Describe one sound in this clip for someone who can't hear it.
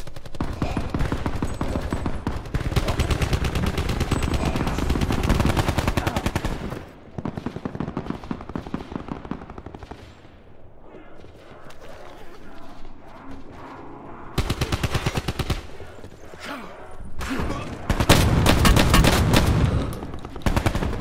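Automatic gunfire rattles in rapid bursts, loud and close.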